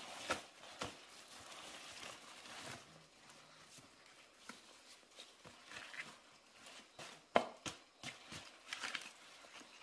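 Stalks rustle as hands gather them into a bundle.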